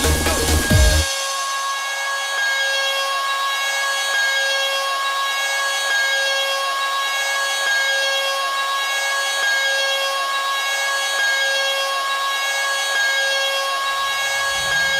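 The deep bass of the dance music drops out, then comes back in.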